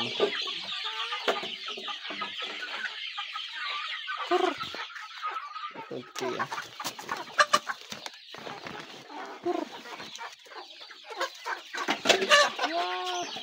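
Young chickens peep in high, rapid chirps.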